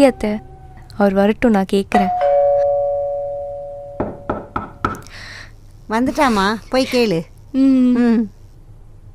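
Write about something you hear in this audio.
An older woman talks calmly nearby.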